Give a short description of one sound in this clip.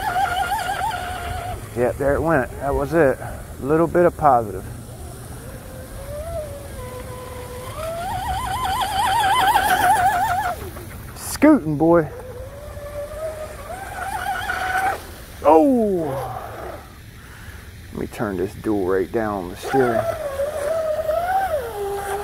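A small electric boat motor whines loudly, its pitch rising and falling as it races across the water.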